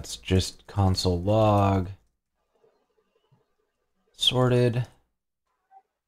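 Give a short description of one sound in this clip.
A man speaks into a close microphone, in short bursts.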